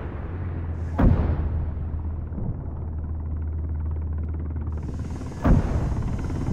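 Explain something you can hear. Twin cannons fire loud, sharp shots.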